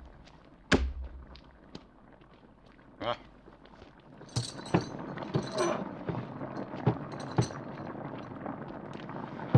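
Heavy metal chains clank and rattle.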